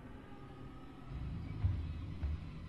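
Heavy footsteps of a large creature thud.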